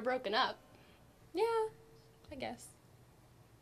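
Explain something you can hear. A teenage girl speaks quietly nearby.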